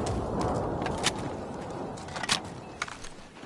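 Sharp gunshots crack out.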